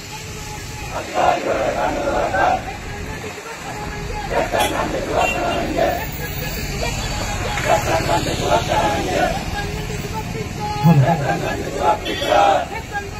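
A man leads the chant, shouting close by.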